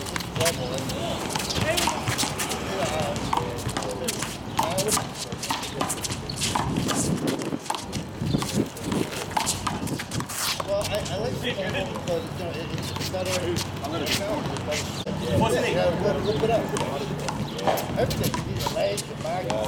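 Sneakers scuff and squeak on pavement.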